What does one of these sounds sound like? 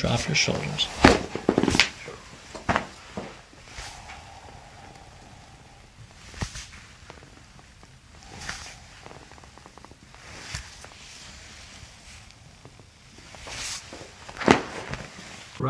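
Joints give short, sharp cracks under pressing hands.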